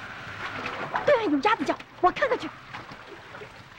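A young boy calls out nearby.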